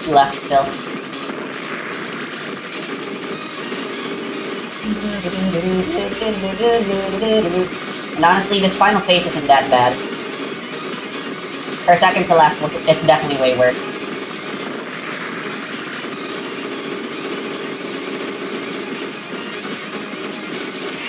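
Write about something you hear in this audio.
Rapid electronic shooting sounds rattle steadily.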